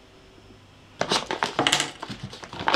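A paper bag crinkles and rustles close by.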